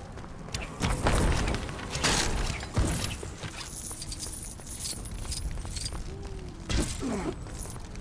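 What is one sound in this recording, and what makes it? Lego bricks clatter and scatter across the ground.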